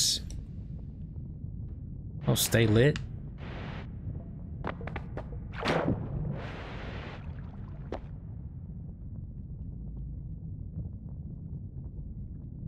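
A magic wand fires crackling bursts of flame.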